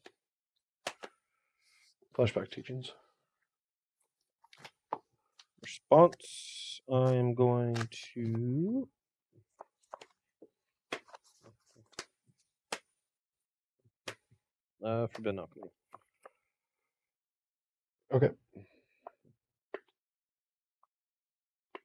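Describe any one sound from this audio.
Playing cards are shuffled and set down on a table.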